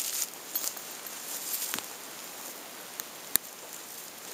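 Dry spruce twigs rustle and snap as a person gathers them.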